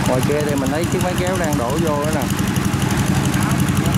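A small tractor engine chugs steadily.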